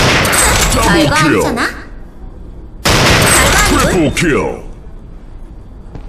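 A bolt-action rifle clicks as it is reloaded.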